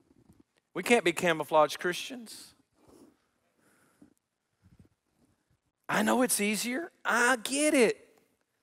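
A middle-aged man speaks with animation through a headset microphone, pausing between phrases.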